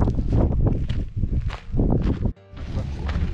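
Footsteps crunch on loose gravel and stones.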